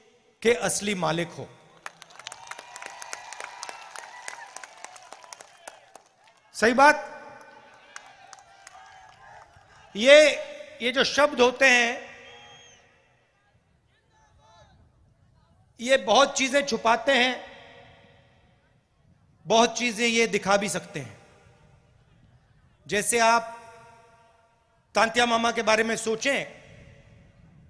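A man speaks forcefully into a microphone over loudspeakers, in short bursts with pauses.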